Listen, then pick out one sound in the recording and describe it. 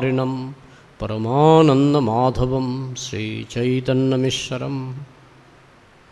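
An elderly man chants in a sustained, melodic voice through a microphone.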